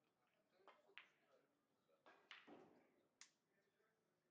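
Billiard balls knock together and roll across the table.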